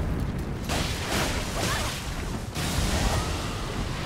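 A sword clashes and slashes.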